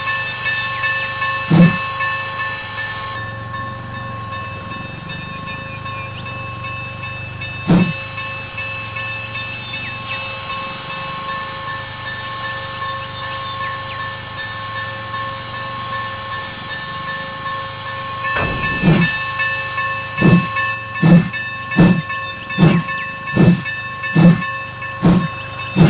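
A steam locomotive hisses and rumbles steadily.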